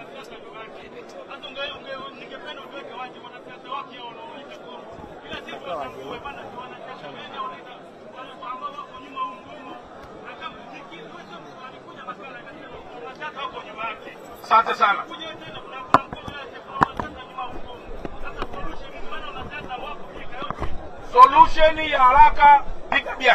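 A man shouts with animation through a megaphone outdoors.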